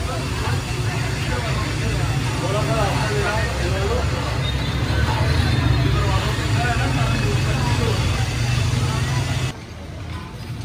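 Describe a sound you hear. A ladle stirs liquid in a large pan.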